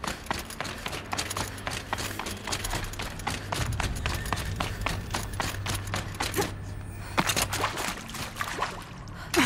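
Footsteps crunch quickly on snow.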